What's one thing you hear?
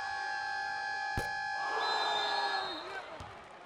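A loud buzzer sounds in a large echoing arena.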